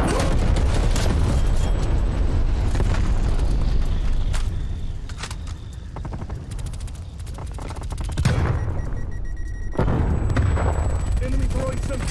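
Fire crackles and roars nearby.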